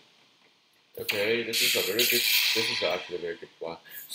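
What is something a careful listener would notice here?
A video game plays a sharp clashing attack effect.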